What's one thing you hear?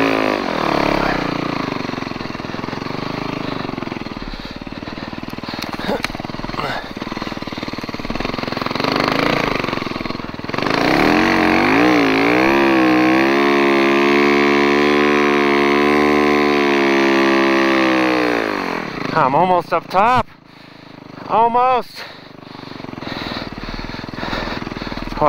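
A snowmobile engine runs close by, revving up and down.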